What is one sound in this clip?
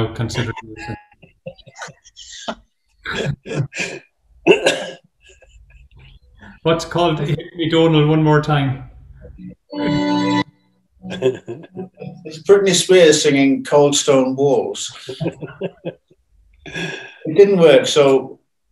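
An elderly man laughs over an online call.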